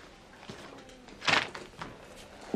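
Papers rustle as a folder is handled.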